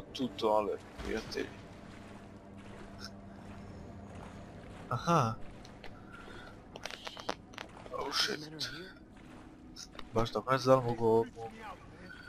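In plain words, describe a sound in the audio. Water sloshes and splashes as a swimmer moves through it.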